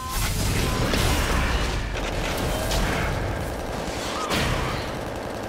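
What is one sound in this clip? Magic spell effects whoosh and crackle in quick bursts.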